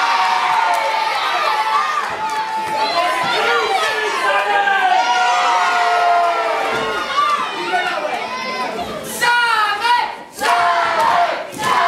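A crowd of fans shouts and cheers in an echoing hall.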